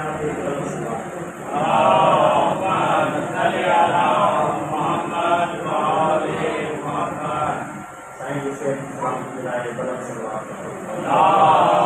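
A man preaches loudly and with feeling into a microphone, heard through loudspeakers in an echoing room.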